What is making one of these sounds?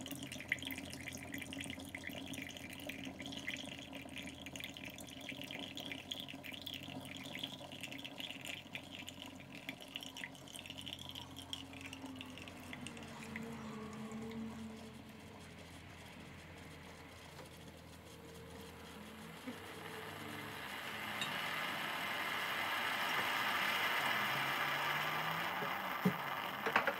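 A coffee machine pumps and hums steadily.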